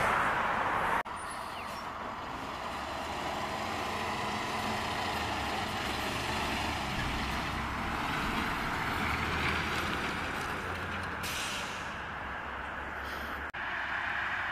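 A truck engine rumbles low and steadily as the truck drives by.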